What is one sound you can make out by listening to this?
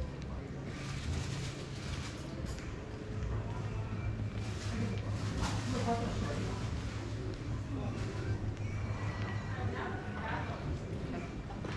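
Distant voices of men and women murmur in an open square.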